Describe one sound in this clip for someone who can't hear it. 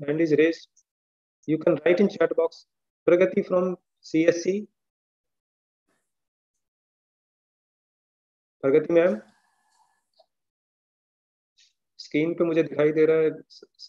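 A middle-aged man speaks calmly through an online call, in short phrases with pauses.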